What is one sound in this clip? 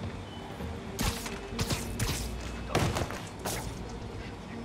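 Sharp web shots snap and thud in quick bursts.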